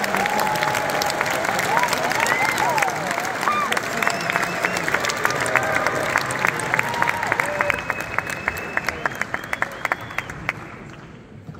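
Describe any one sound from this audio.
An audience claps and cheers loudly in a large hall.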